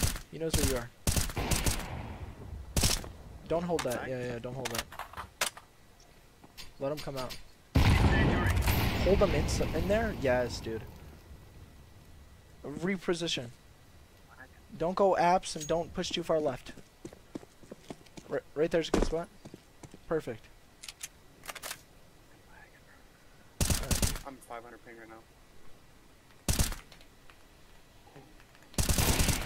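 A rifle fires sharp shots in short bursts.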